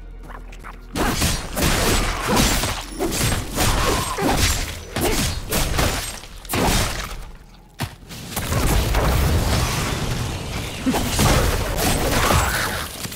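Weapons clash and strike in a fast, noisy fight.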